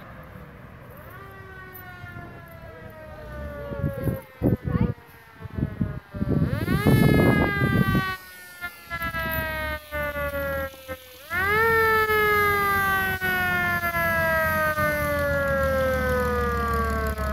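A siren wails in rising bursts that slowly wind down in pitch.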